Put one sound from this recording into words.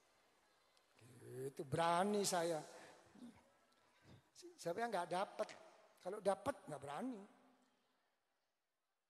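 An elderly man speaks slowly through a microphone, heard over a loudspeaker.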